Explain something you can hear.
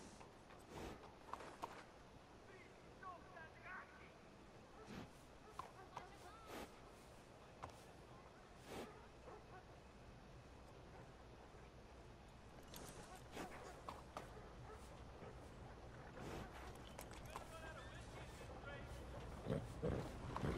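A horse stamps its hooves on packed dirt now and then.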